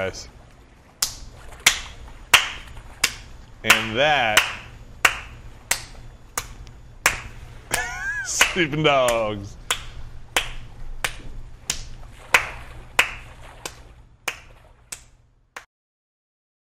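Water splashes with each stroke of a swimmer.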